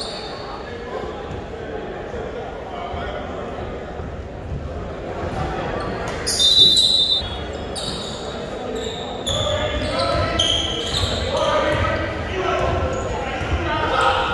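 A crowd of spectators murmurs and chatters in a large echoing gym.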